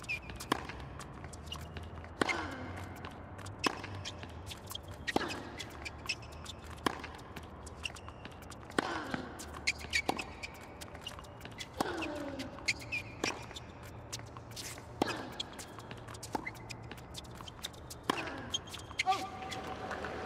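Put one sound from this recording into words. A tennis ball is struck back and forth with rackets in a steady rally.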